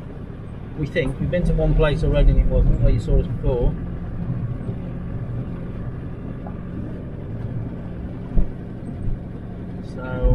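A car engine hums steadily from inside the vehicle.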